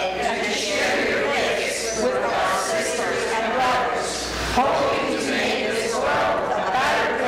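A woman sings, heard from a distance in an echoing room.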